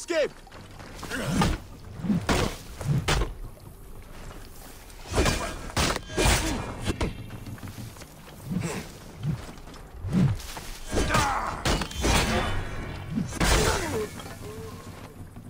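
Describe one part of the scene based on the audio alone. Weapons clash and thud in a fight.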